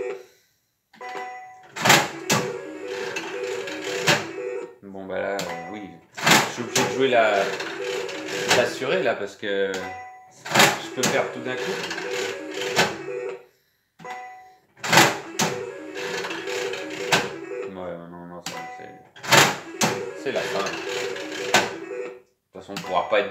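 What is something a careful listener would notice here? A slot machine's reels spin with a whirring rattle.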